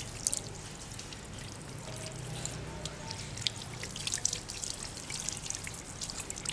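Water sprays from a hand shower and splashes onto feet in a basin.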